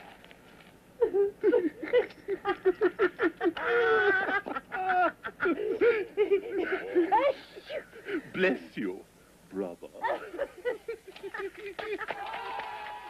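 A woman laughs along.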